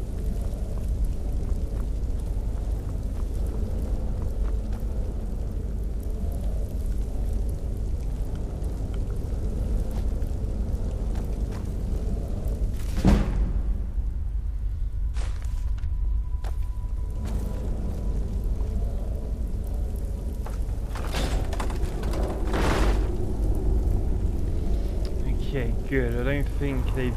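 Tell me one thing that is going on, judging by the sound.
Fires crackle softly in braziers.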